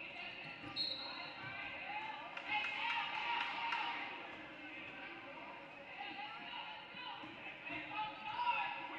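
Young players and spectators call out in a large echoing gym.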